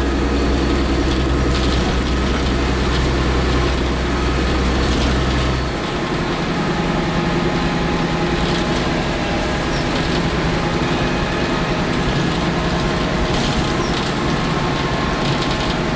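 Metal rattles and clinks as a bus moves.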